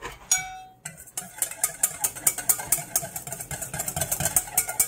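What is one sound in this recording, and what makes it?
A spoon scrapes and clinks quickly against a metal bowl.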